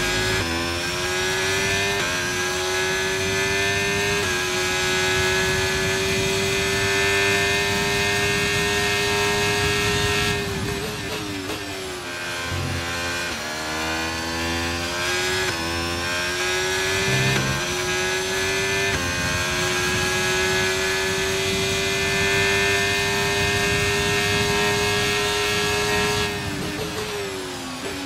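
A racing car engine screams at high revs, dropping in pitch with each gear shift and when braking for corners, then climbing again.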